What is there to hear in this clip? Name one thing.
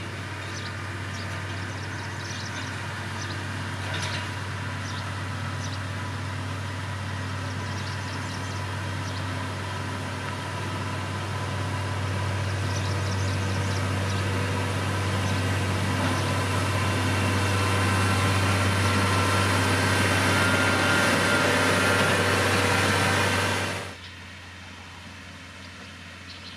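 A diesel engine rumbles steadily and grows louder as a road grader approaches.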